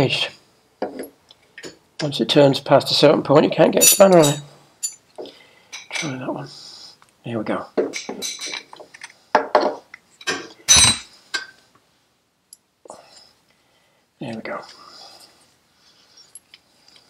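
Metal parts clink and scrape as a brake caliper is worked loose.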